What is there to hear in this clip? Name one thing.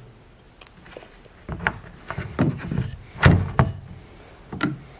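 Wooden parts knock and clack together.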